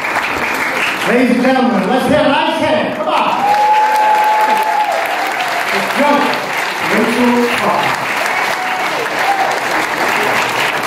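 A man speaks cheerfully into a microphone in an echoing hall.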